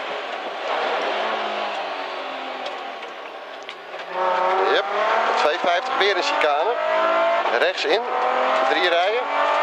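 A race car engine roars and revs up and down through gear changes, heard from inside the car.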